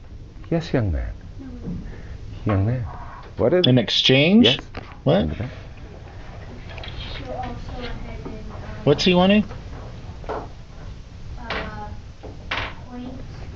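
A middle-aged man speaks animatedly into a clip-on microphone, with a slight room echo.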